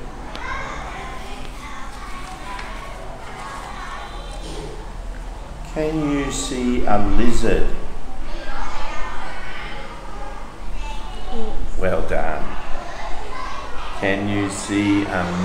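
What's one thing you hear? An elderly man speaks calmly and clearly, close by.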